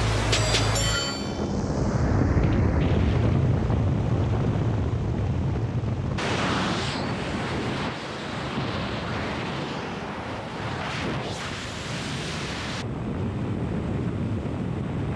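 Wind roars and rushes past loudly.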